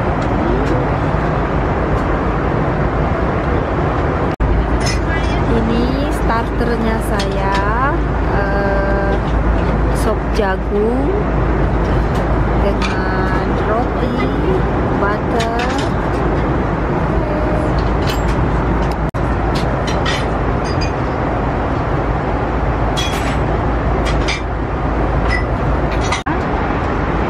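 A steady low roar of an airplane cabin fills the air.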